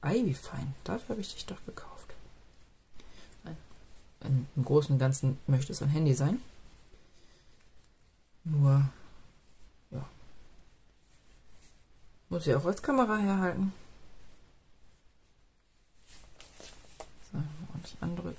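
Fingers rustle softly against paper while tying a thread.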